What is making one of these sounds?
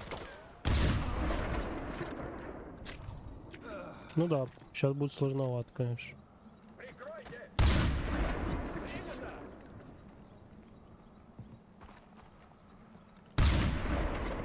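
A sniper rifle fires loud, echoing shots.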